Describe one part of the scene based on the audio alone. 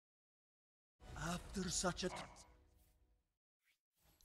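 A short triumphant game fanfare plays.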